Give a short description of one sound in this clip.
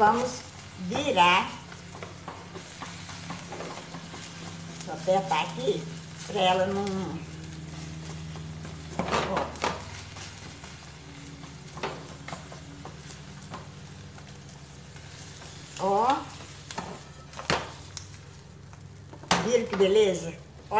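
An older woman talks calmly nearby.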